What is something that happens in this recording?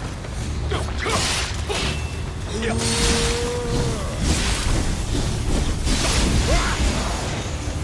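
Metal blades clang and slash against armour.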